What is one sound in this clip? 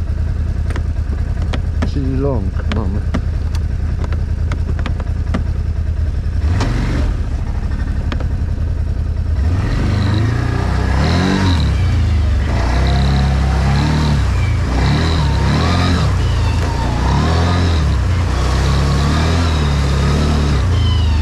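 Quad bike tyres squelch through mud.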